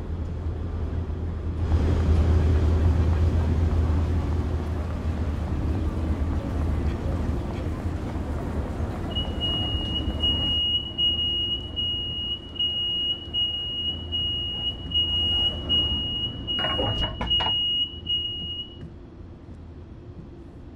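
A train engine rumbles steadily nearby.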